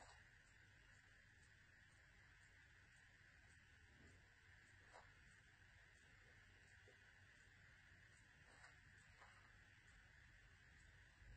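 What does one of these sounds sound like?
Fabric rustles softly as hands fold and handle it.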